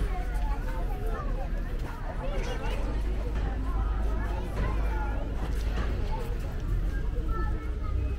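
Several women chatter nearby, with many overlapping voices.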